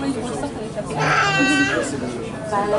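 A young woman shrieks with excitement.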